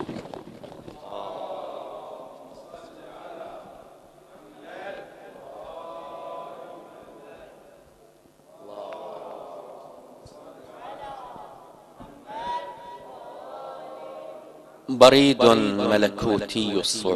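A man recites poetry into a microphone, heard through loudspeakers in a large room.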